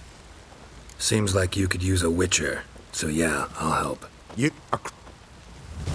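A man speaks in a low, gravelly voice, calmly and close.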